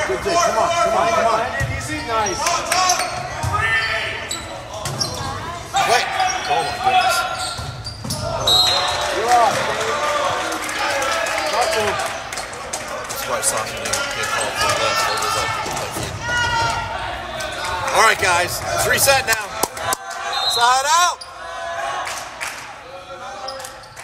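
Young men shout and call out to one another in a large echoing gym.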